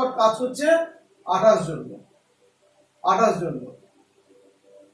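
A man speaks clearly and calmly close by, in short phrases.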